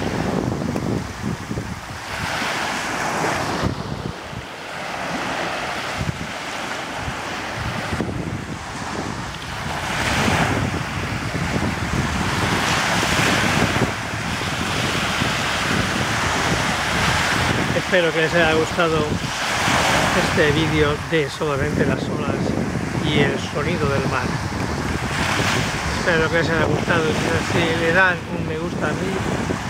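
Small waves wash up and break gently on a sandy shore.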